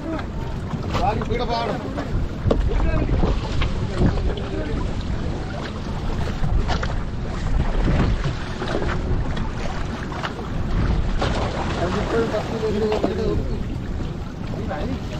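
Wet fishing nets rustle and drag over a boat's side.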